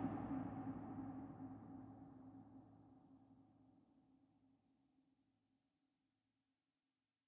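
Music plays and slowly fades away.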